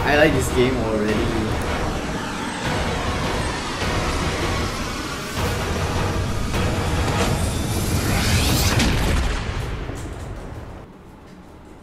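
A spacecraft engine roars loudly and then fades.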